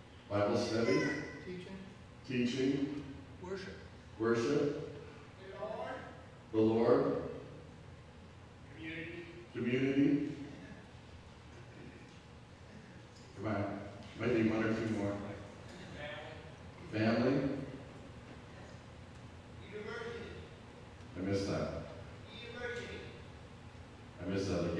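A middle-aged man speaks calmly through a headset microphone, with pauses between phrases.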